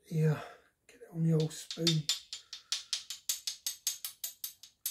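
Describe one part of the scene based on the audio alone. A spoon clinks as sauce is shaken out of a bottle.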